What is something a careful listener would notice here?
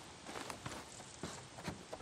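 Boots knock on the wooden rungs of a ladder.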